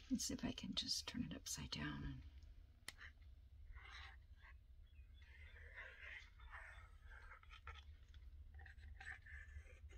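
Paper rustles and crinkles as it is handled up close.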